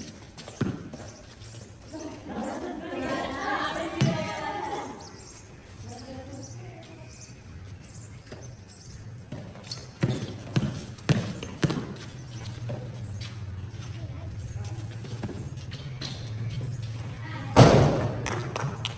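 Footsteps patter on a paved court.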